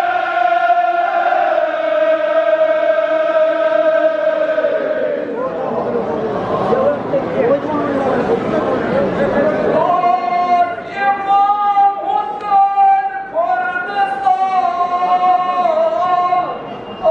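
A crowd of men chants and sings loudly in unison.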